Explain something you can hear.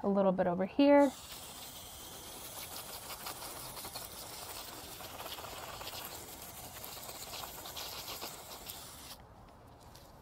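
A garden hose nozzle sprays water with a steady hiss.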